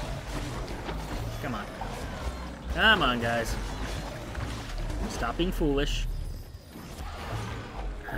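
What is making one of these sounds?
Blades slash and strike in quick, sharp bursts.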